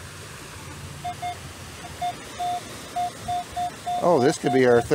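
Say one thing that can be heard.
A metal detector beeps in short repeated tones.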